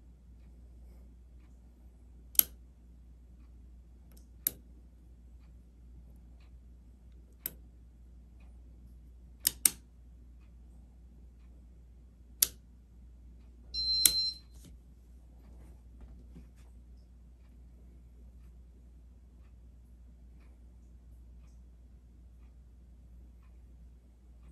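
A ceiling fan whirs with a low, steady hum.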